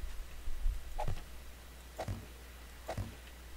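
A heavy stone block thuds down into place.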